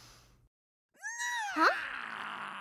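A young girl sniffles and whimpers.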